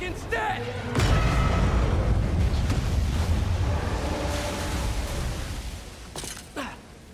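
A huge structure collapses with a deep, roaring rumble.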